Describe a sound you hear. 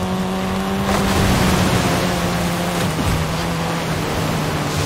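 Water splashes under a car's tyres.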